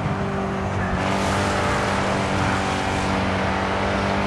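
Tyres skid and scrape over grass.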